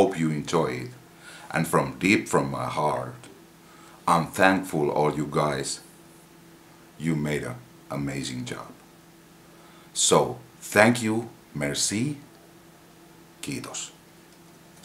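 A middle-aged man talks with animation, close to a microphone.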